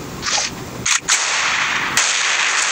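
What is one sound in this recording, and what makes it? A sniper rifle fires a loud single shot.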